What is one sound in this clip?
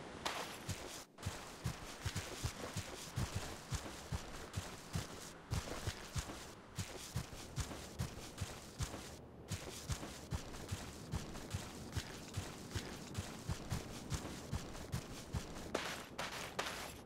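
Footsteps tread steadily over grass.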